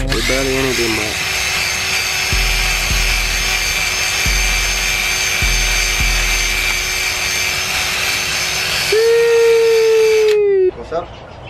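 A power drill whirs steadily at high speed.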